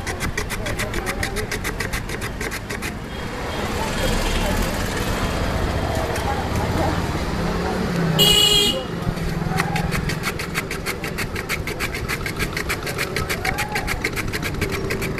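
A glass bottle rapidly taps and grinds on a wooden board.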